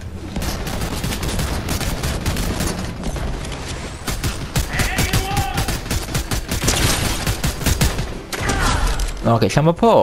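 Rapid gunfire cracks in quick bursts.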